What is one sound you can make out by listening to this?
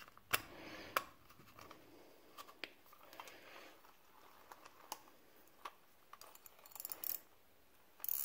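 Small metal parts of a fishing reel click and tap as they are handled.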